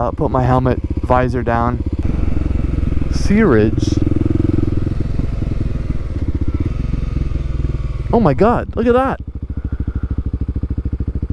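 A motorcycle engine putters steadily close by.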